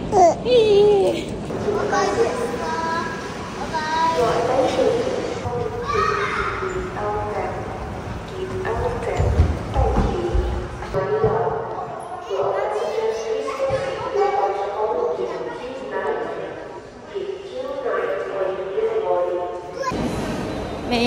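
Young boys chatter and call out.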